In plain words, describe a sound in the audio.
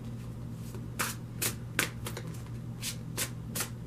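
A deck of cards is shuffled with quick snapping clicks.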